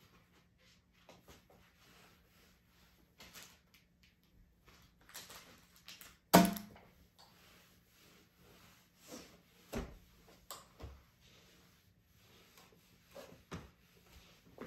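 A stick taps and knocks on the floor and furniture nearby.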